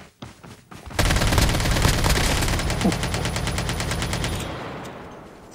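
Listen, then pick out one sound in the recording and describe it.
Gunfire bursts loudly.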